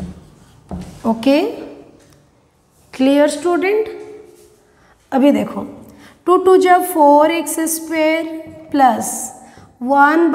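A young woman speaks calmly and clearly, as if explaining.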